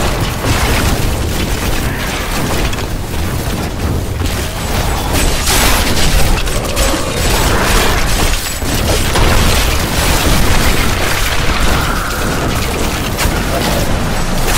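Spell blasts and magic crackle and boom without a break.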